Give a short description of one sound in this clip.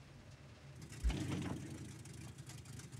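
A tank cannon fires with a loud boom that echoes away.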